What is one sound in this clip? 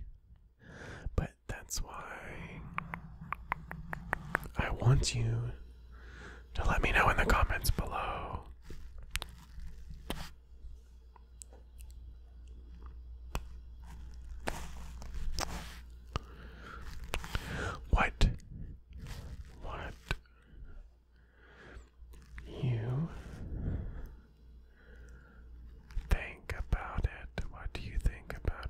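Fingers tap and rub on a microphone, making crisp close clicks.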